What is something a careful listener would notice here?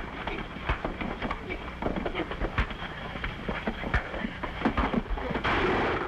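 Fists and bodies thud in a fight.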